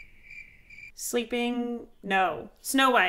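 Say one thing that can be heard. A young woman speaks with animation into a close microphone.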